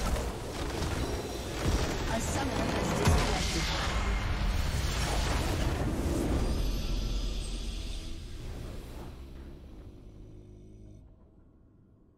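A magical blast booms and rumbles loudly, then slowly fades.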